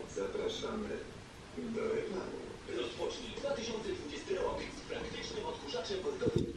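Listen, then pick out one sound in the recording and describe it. Two cats yowl at each other in low, drawn-out wails.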